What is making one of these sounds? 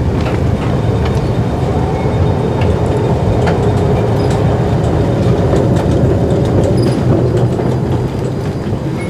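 An escalator hums and rumbles as it runs.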